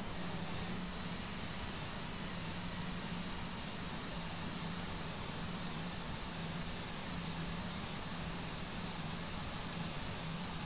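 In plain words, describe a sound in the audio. Jet engines hum steadily inside an airliner cabin.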